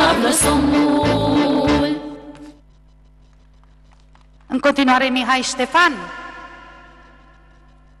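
A children's choir sings loudly in bursts, with the sound echoing away.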